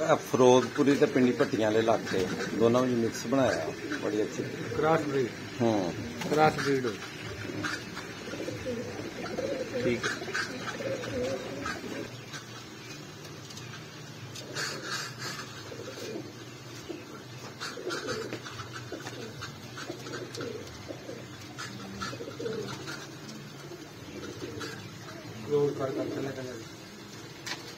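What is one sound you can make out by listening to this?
Pigeons coo softly and repeatedly close by.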